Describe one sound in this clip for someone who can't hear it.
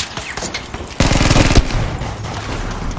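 An explosion booms and rumbles nearby.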